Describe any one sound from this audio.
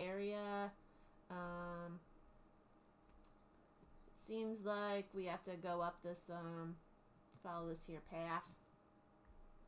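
A woman talks animatedly over an online call.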